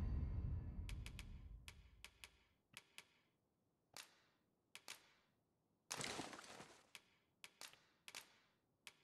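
Short menu clicks tick one after another.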